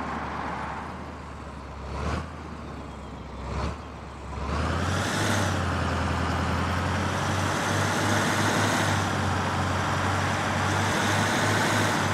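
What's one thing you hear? A vehicle engine rumbles steadily and grows louder as it picks up speed.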